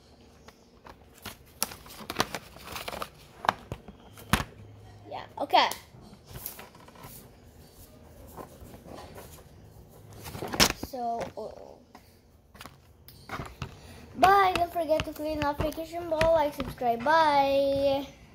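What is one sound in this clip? Paper rustles and crinkles in a young boy's hands.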